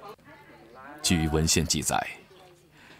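A middle-aged woman talks cheerfully up close.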